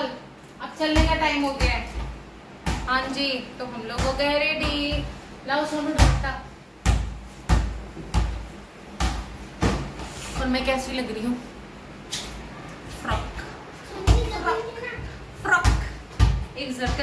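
A ball thuds and bounces on a hard floor.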